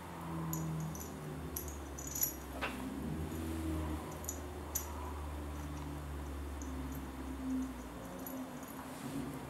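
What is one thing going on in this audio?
Metal parts click and clink as a hand handles them.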